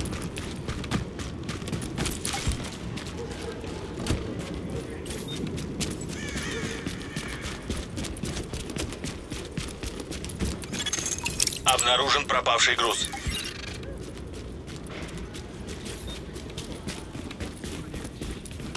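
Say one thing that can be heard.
Running footsteps crunch quickly through snow.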